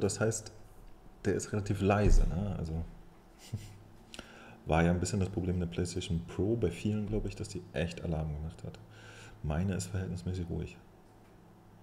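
A man talks calmly and closely through a microphone.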